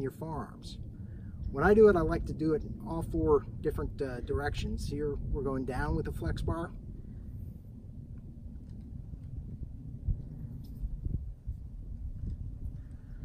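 Wind rumbles softly outdoors.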